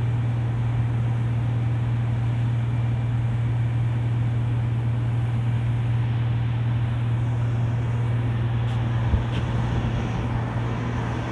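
Churning water rushes and foams in a ship's wake.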